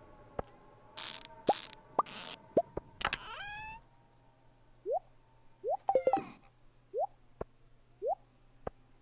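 Short bright chimes and pops sound.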